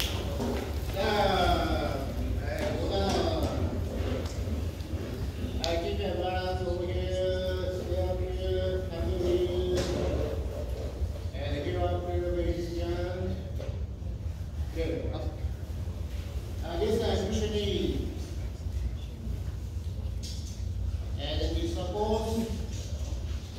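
A man calls out commands loudly in an echoing hall.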